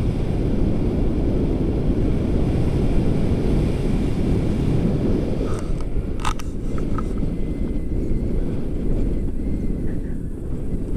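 Strong wind rushes and buffets loudly outdoors.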